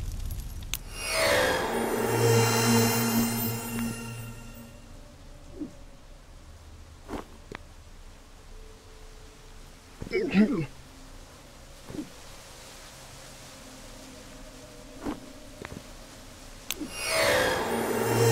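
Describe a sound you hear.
A shimmering magical swoosh sweeps by.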